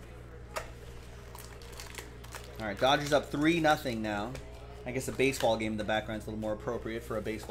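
Foil card packs crinkle in someone's hands.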